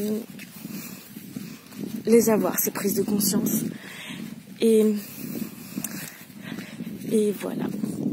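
A young woman talks close to the microphone.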